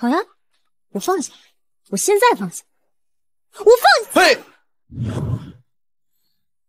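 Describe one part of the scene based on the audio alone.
A young woman speaks in a strained voice.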